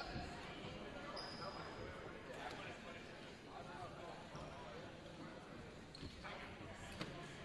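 Players chatter and call out in a large echoing gym.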